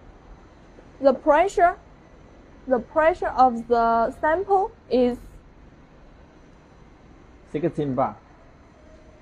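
A young woman speaks close by, explaining calmly.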